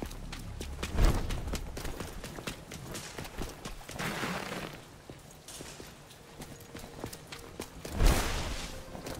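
Heavy impacts boom with a crash.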